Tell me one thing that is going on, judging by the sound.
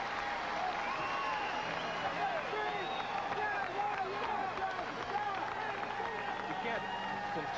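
A large crowd cheers loudly outdoors.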